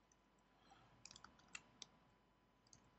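Small metal parts click softly as they are handled.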